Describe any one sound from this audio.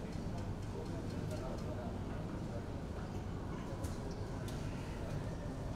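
Snooker balls clack as they are picked up and placed.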